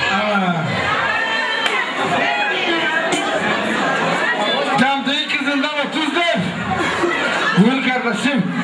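A man speaks loudly and with animation into a microphone, heard through loudspeakers.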